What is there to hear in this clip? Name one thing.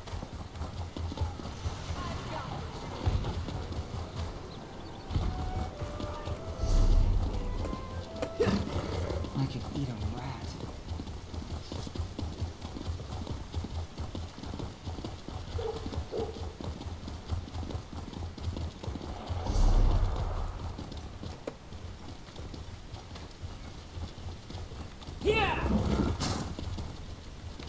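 Hooves clop steadily as a horse trots along.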